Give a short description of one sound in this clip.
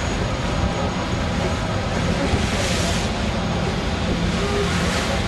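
Water churns and splashes in a boat's wake.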